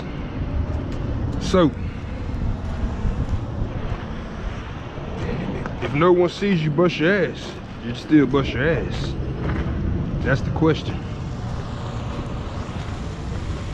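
Footsteps crunch on wet gravel.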